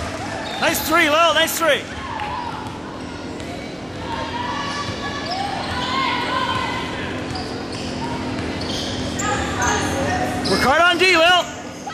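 Players and spectators call out in a large echoing gym.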